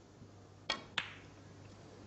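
Snooker balls clack against each other.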